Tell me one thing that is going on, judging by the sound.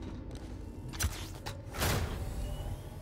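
A control panel clicks and beeps as buttons are pressed.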